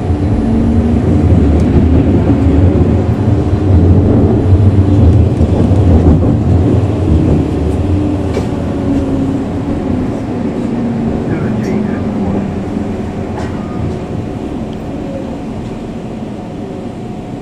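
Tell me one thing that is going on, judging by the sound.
A tram rumbles along its rails with a steady low hum that slowly fades.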